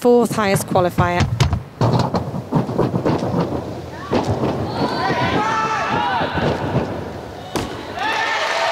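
Feet thud on a springy track as a gymnast tumbles and lands.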